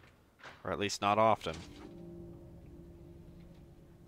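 A heavy metal door slides open with a mechanical whir.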